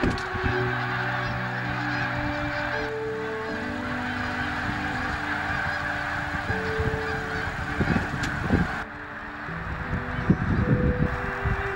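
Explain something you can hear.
A huge flock of geese honks and calls in a dense, constant chorus.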